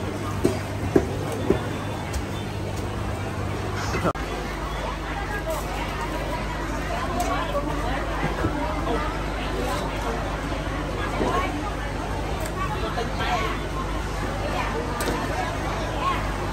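A busy market crowd chatters in the background.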